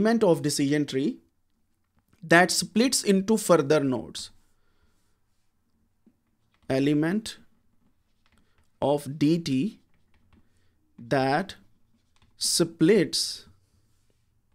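A man speaks calmly and explains, close to a microphone, with pauses.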